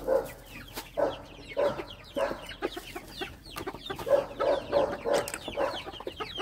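A hen clucks repeatedly close by.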